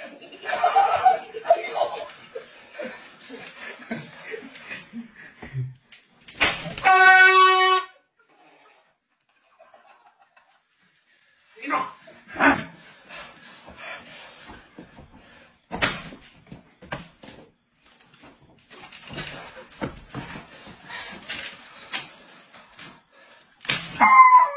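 Men laugh loudly nearby.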